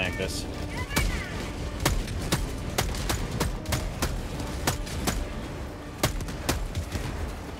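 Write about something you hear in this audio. A rifle fires single shots in quick succession.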